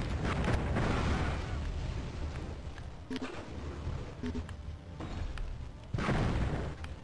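A crossbow fires magical bolts with a whooshing burst.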